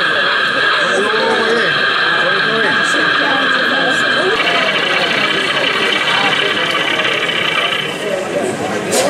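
A model locomotive's engine hums steadily, then stops.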